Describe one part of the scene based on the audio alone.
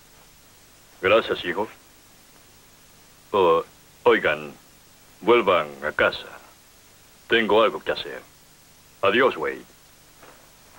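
A man speaks tensely nearby.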